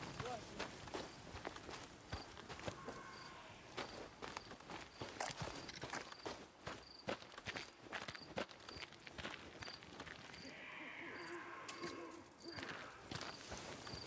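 Footsteps crunch quickly over grass and dirt.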